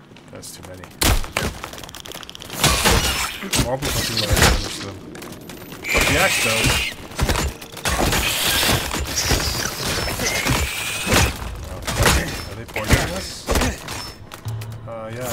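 Weapon blows thud against a giant spider in quick bursts.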